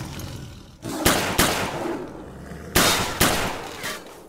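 A rifle fires several loud single shots that ring out and echo.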